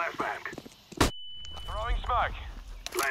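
A stun grenade bursts with a sharp bang, followed by a high ringing tone.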